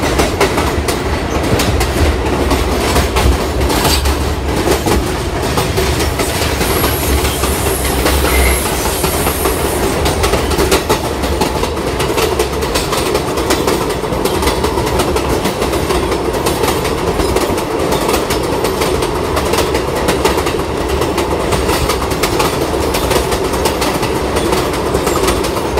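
Loose chains and metal fittings clatter and jingle as the train sways.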